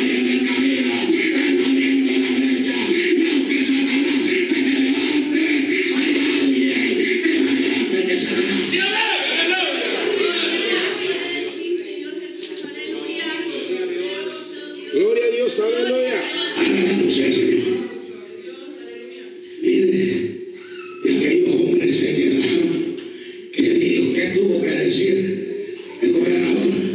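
A man preaches forcefully into a microphone, heard over loudspeakers in an echoing hall.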